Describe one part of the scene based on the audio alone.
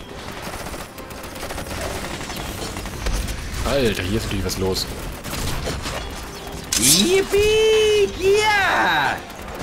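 Magic blasts burst and crackle in a battle.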